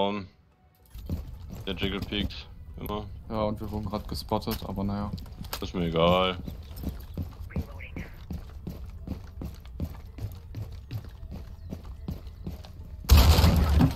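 Footsteps patter rapidly on a hard floor.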